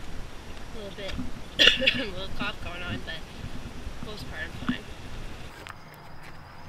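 A young woman talks close to a microphone outdoors.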